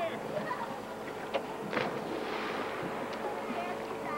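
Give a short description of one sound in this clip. Water splashes as a dog swims.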